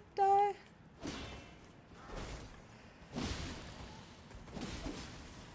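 Weapons swish and strike during a fight.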